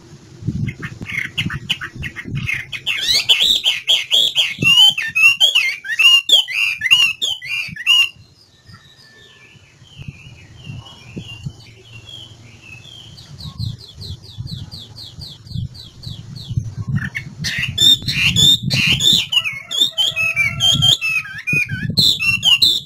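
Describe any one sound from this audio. A songbird sings loud, varied, warbling phrases close by.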